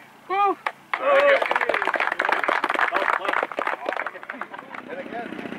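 A small group of people claps.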